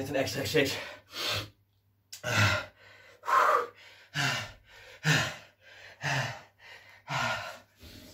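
A man breathes out hard in rhythm with each exercise movement.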